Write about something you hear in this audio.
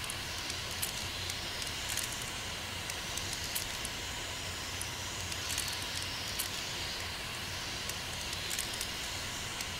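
Dials of a combination padlock click as they turn.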